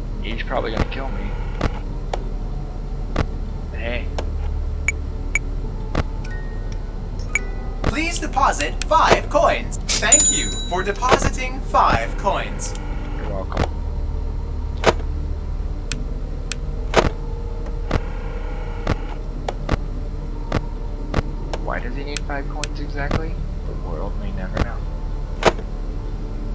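Short electronic clicks sound again and again.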